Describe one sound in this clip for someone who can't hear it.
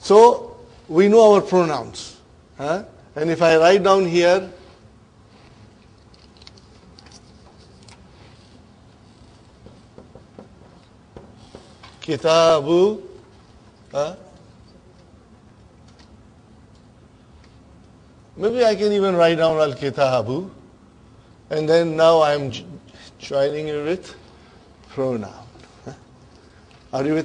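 An older man speaks calmly in bursts, close by.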